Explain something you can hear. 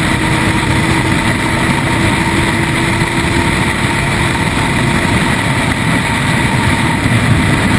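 A motorcycle engine roars steadily at speed.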